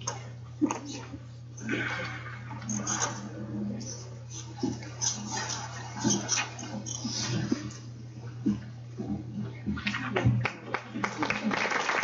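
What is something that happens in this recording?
Chairs shift and knock as people sit down.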